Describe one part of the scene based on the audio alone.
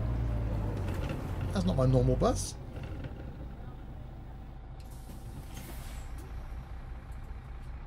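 A bus engine rumbles steadily, louder at first and then quieter.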